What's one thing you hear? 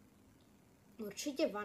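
A young boy speaks close to a microphone.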